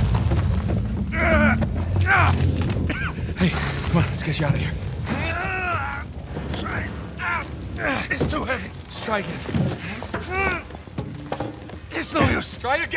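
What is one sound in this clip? A man groans and speaks in a strained voice, close by.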